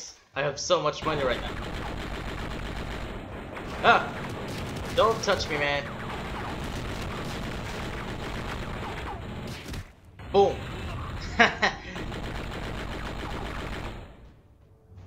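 A machine gun fires in rapid, steady bursts.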